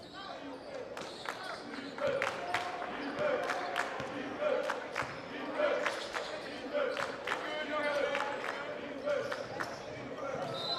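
A basketball bounces on a hard wooden court with echoing thuds in a large gym.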